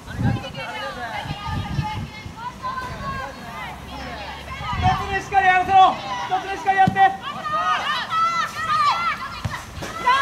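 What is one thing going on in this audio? Players shout to each other across an open field outdoors.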